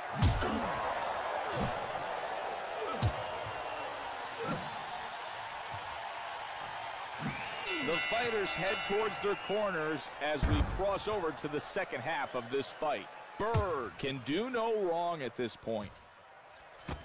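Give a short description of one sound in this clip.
A crowd roars and cheers steadily.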